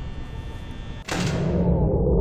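The power cuts out with a sudden, heavy electrical clunk.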